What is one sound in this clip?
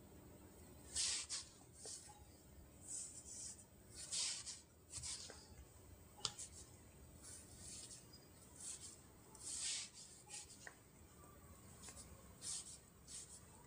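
Fingertips tap and swipe on a phone's glass.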